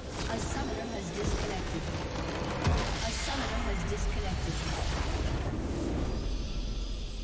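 A tower collapses with a loud crash.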